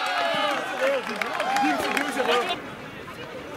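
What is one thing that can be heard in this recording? Young men shout and cheer excitedly outdoors.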